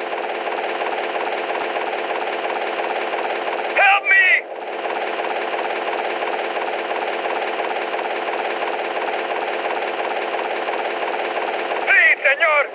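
A helicopter rotor chops steadily overhead.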